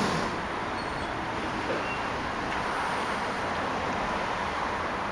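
A tram rolls past close by with a steady rumble and hum.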